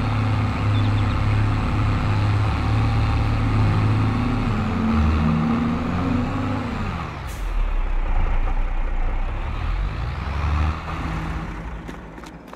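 A tractor engine rumbles and revs as the tractor drives.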